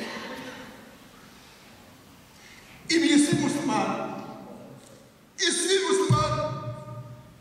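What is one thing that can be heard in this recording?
An elderly man preaches into a microphone in a large echoing hall.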